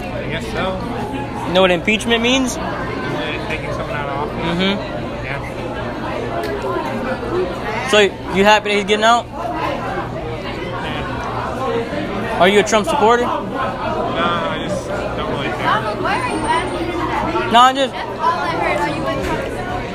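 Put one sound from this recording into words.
Many people chatter throughout a large, echoing room.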